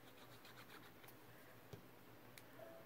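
A glue stick dabs and scrapes on paper.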